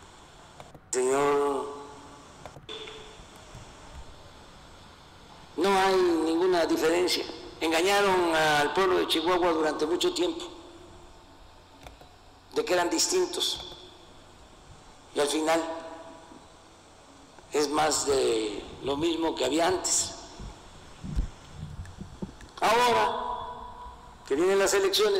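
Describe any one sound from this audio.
An elderly man speaks steadily into a microphone in short bursts, heard through a loudspeaker.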